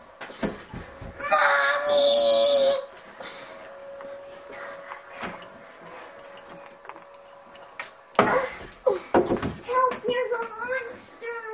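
A door opens and closes with a knock of its handle.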